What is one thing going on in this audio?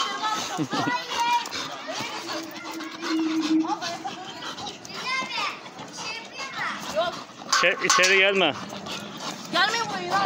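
A dog pushes a ball with a wire muzzle, scraping and tapping it across a hard floor.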